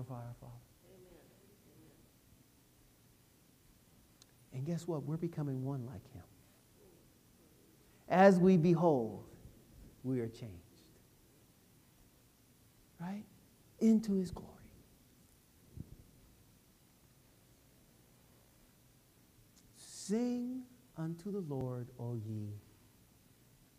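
A man speaks calmly to an audience, with long pauses.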